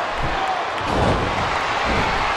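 A body slams hard onto a metal ladder.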